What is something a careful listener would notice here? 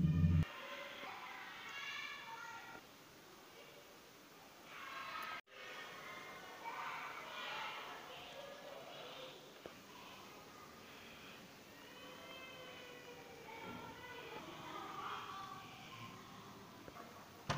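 A boy speaks quietly nearby.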